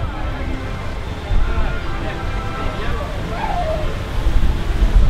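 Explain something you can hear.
A crowd of people chatters nearby outdoors.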